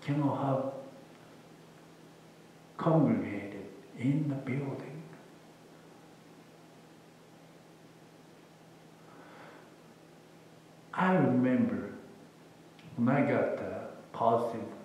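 A man speaks calmly through a microphone in a large echoing room, with long pauses.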